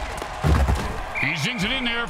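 Football players collide with a heavy thud.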